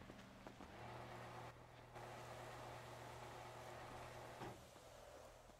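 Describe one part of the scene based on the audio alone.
A metal roller shutter door rolls down and shuts.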